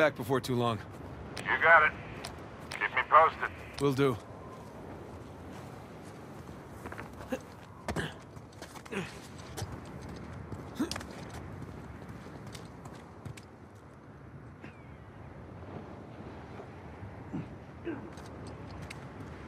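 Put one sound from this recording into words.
Footsteps crunch on snow and rock.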